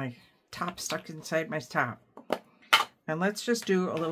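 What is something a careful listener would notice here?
A plastic lid snaps open.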